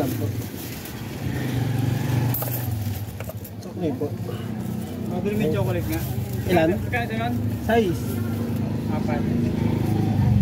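A plastic bag rustles in hand.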